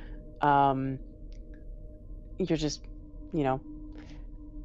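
A woman makes short, animated exclamations over an online call.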